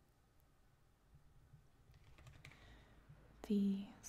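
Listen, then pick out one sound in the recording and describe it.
A small box taps on a wooden table.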